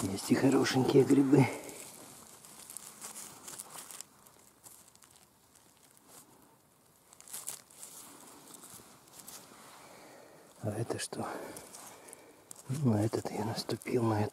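Dry pine needles and leaves rustle under a hand.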